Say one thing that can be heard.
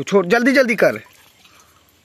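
Water splashes as a hand slaps the surface.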